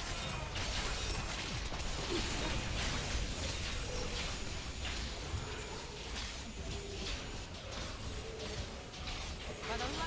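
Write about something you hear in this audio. Game spells crackle and burst in quick succession.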